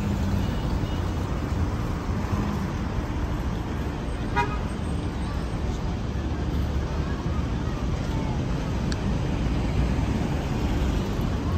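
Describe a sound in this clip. A car drives past slowly.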